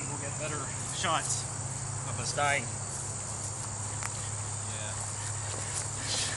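A man talks casually as he walks up close.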